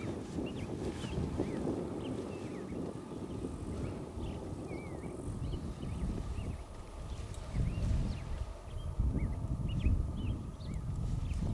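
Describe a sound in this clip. Wind rumbles across the microphone outdoors in gusts.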